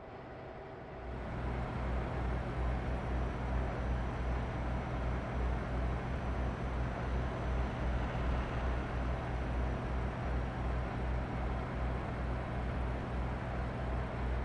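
A truck engine rumbles steadily at cruising speed.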